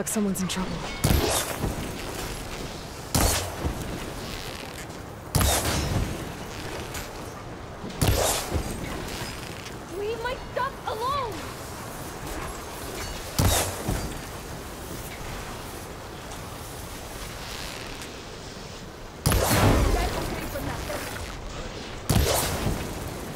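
A bow twangs sharply as arrows are loosed, again and again.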